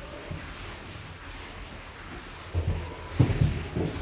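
An eraser rubs across a chalkboard.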